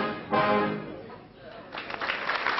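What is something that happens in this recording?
A brass band plays a loud chord that rings out in a large echoing hall.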